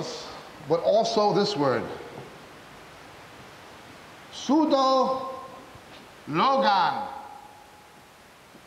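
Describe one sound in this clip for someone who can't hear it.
A man speaks with emphasis into a microphone, in short bursts.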